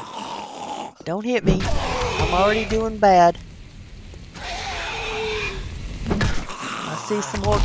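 A zombie snarls and groans.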